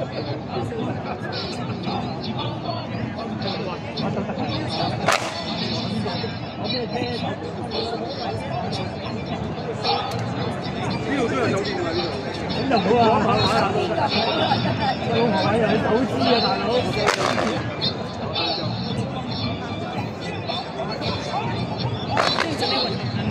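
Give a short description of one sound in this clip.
Music plays over loudspeakers outdoors.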